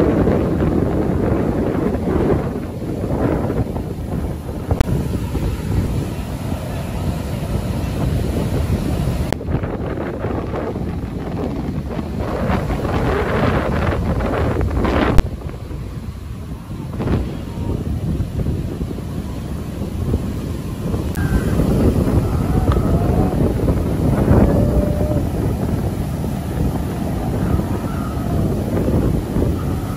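Strong wind rumbles and buffets loudly.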